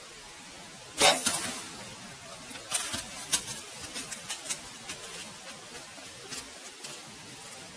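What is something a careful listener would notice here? A deer bolts away, crunching dry leaves.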